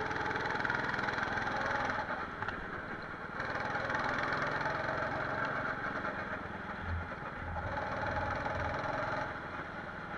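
A go-kart engine buzzes loudly, rising and falling with the throttle.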